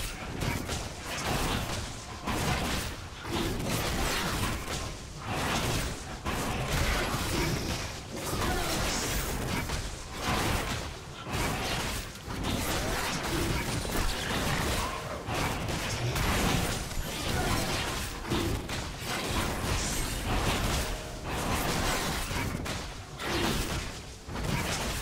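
Blades and spells clash repeatedly against a roaring beast in a video game.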